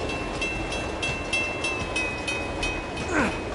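A level crossing bell rings rapidly as the train passes.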